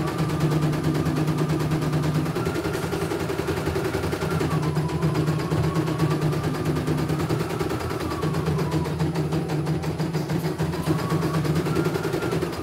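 An embroidery machine stitches with a fast, steady rattling hum.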